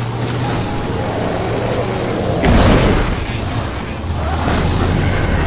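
A car engine hums steadily as the vehicle drives over rough ground.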